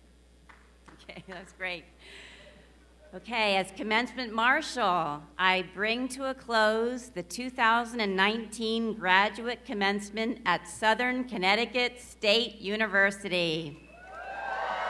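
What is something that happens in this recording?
An elderly woman speaks calmly into a microphone, heard over loudspeakers in a large hall.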